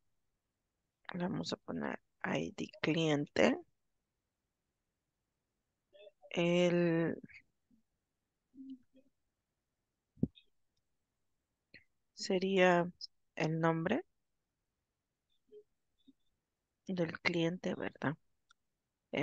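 A woman speaks calmly through an online call, pausing between phrases.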